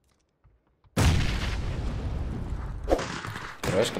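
A smoke grenade hisses loudly.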